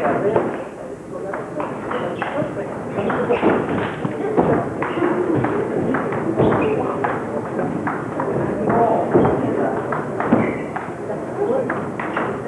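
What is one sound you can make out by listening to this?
A table tennis ball clicks back and forth off paddles and a table in a quick rally.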